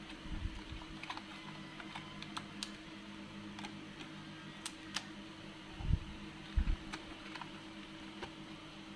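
Small plastic parts click and snap as a memory stick is pushed into a laptop.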